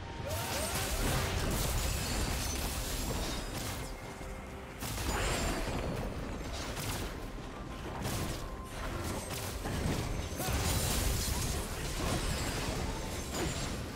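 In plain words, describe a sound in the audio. Characters' weapons clash and strike.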